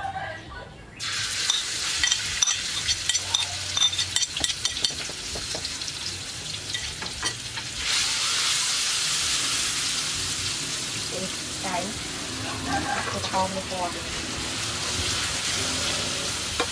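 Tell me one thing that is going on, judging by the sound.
Food sizzles loudly in a hot wok.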